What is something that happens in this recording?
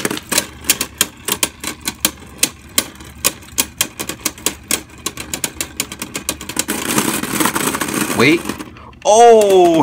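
Spinning tops clack and knock against each other in a plastic arena.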